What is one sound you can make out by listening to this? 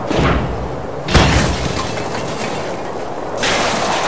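A metal trash can topples over and crashes onto the ground.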